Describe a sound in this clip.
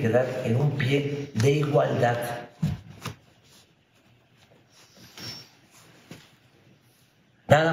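An elderly man speaks calmly and steadily into a microphone.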